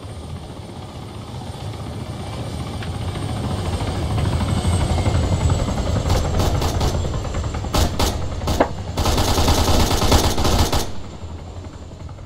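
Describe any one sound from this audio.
A helicopter flies close overhead with a loud, growing rotor rumble.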